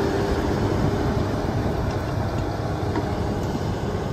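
Steel tracks clank and creak as they roll past.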